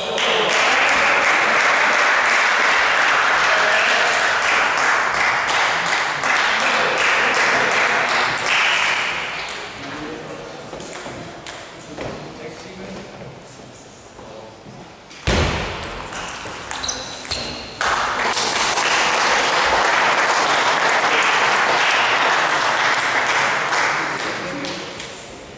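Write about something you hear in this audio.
Spectators applaud loudly.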